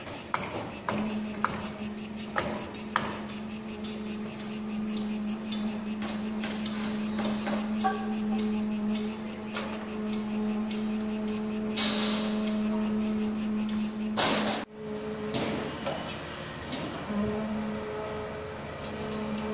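A construction machine engine hums steadily.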